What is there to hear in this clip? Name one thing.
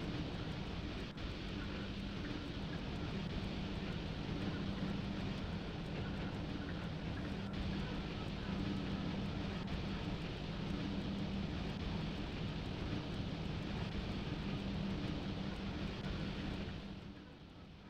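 Train wheels rumble and clatter over rails.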